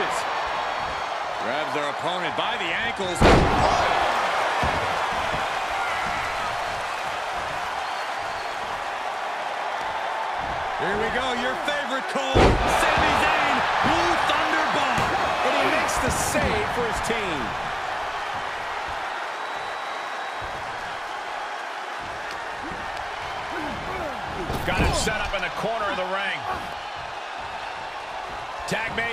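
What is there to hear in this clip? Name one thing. A large indoor arena crowd cheers and roars.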